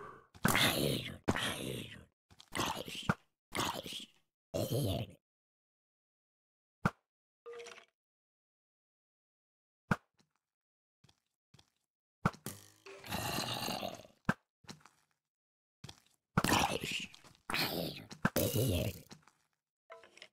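A bow twangs as arrows are shot.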